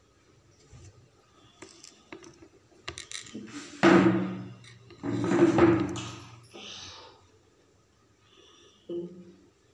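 Small stones tap lightly onto paper.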